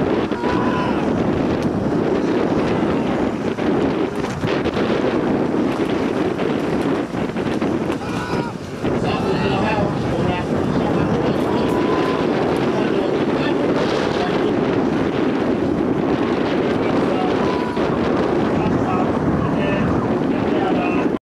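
Small waves wash steadily onto a nearby shore.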